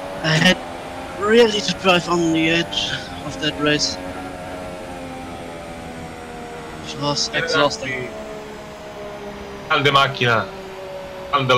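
A racing car engine whines steadily at high speed.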